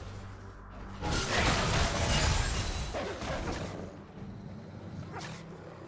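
Magic spell effects whoosh and crackle in a video game battle.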